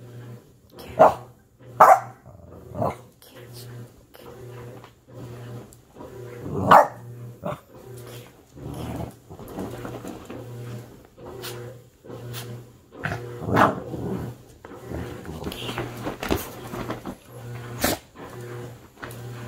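A puppy tugs and rustles a blanket.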